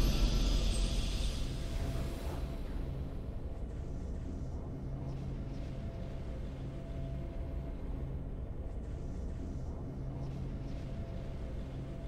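A quiet victory tune hums steadily.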